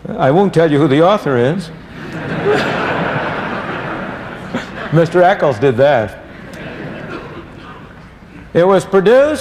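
An elderly man speaks animatedly into a microphone.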